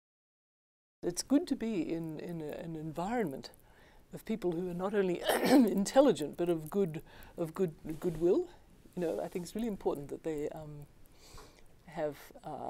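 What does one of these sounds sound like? An elderly woman speaks with animation, close to a microphone.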